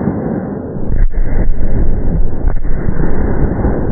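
An explosion bursts from the ground with a loud, sudden boom.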